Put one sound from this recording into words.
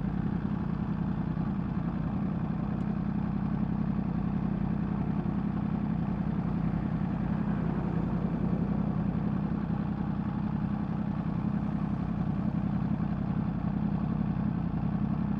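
A motorcycle engine idles close by with a steady low rumble.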